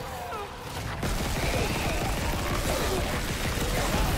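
A weapon fires a loud, roaring blast.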